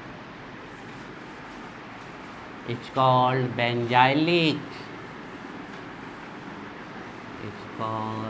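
A cloth wipes across a chalkboard.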